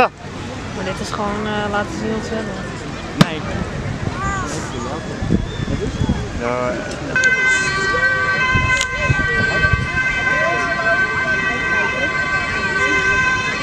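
A crowd of people chatters in the distance outdoors.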